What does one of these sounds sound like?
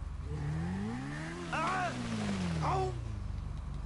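A motorcycle crashes and scrapes along the road.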